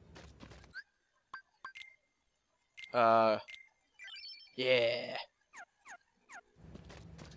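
Short electronic menu blips and chimes sound as options are selected.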